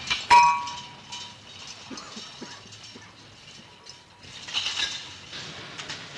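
Glass bottles clink in a cart.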